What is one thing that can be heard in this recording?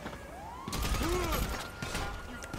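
A pistol fires.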